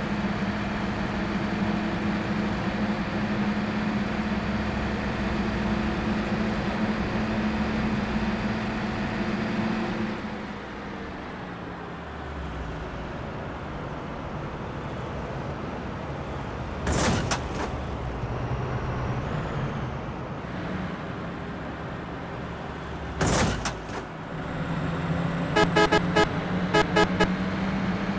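A bus engine drones steadily, louder at first and quieter after a few seconds.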